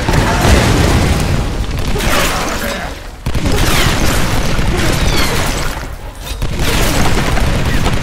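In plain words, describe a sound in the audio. Fires crackle and roar nearby.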